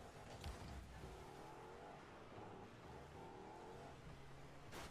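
A video game car engine whines and revs.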